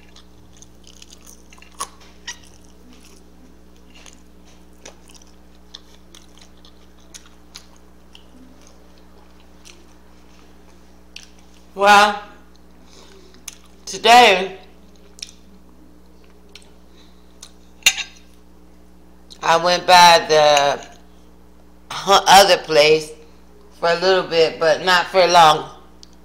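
An elderly woman chews food with her mouth open.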